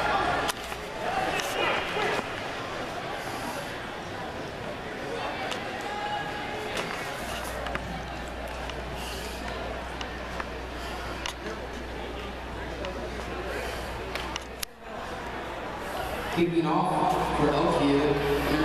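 A crowd murmurs and cheers in a large echoing indoor hall.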